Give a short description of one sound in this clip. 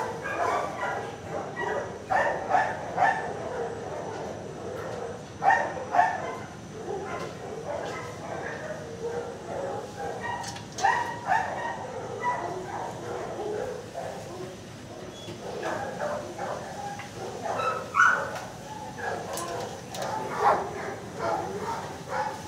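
Many dogs bark loudly and constantly in an echoing room.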